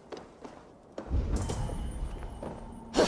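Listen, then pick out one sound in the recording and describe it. A heavy body lands with a low thump.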